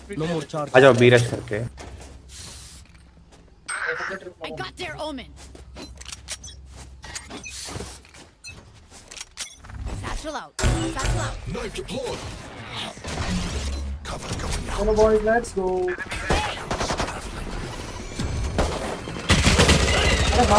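Gunshots crack from a game.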